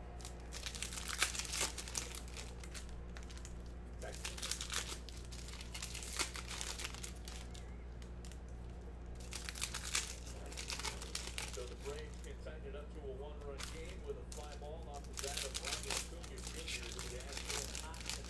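Foil card packs crinkle and rustle as they are torn open.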